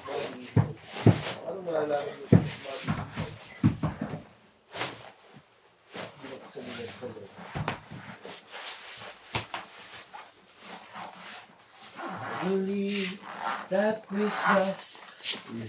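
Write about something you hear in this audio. A fabric case rustles and scrapes as it is pulled.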